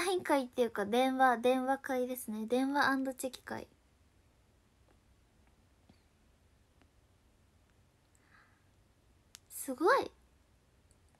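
A young woman speaks brightly and close to a microphone.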